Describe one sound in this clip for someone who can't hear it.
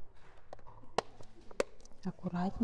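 A plastic disc case clicks shut.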